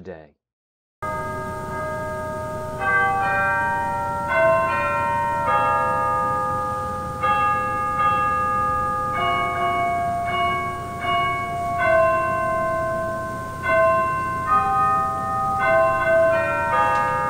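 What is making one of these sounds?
A pipe organ plays sustained chords.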